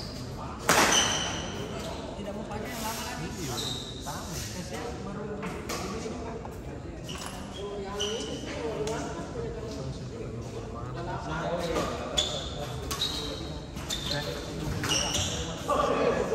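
Badminton rackets strike a shuttlecock in an echoing hall.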